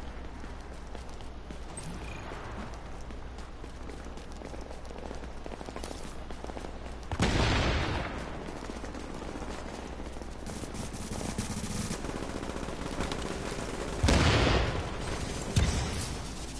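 Footsteps crunch on snow as a character runs.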